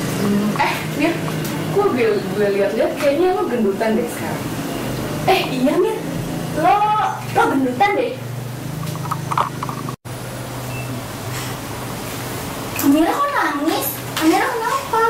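Teenage girls talk with each other nearby.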